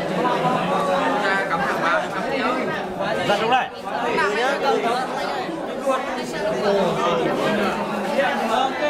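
Young men talk with animation close by, their voices overlapping.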